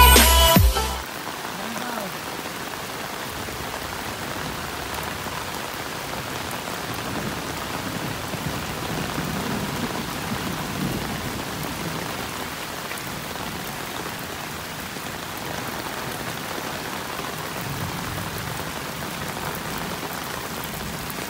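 Floodwater rushes over a paved road.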